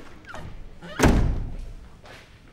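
A door thuds.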